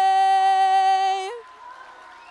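A woman sings a long, held final note in a large hall.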